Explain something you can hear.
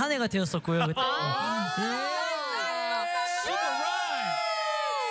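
A young man sings into a microphone.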